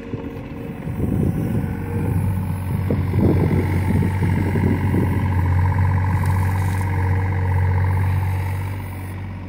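An excavator blade pushes loose dirt.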